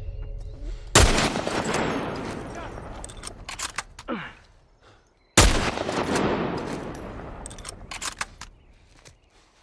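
A pistol fires loud shots that echo away.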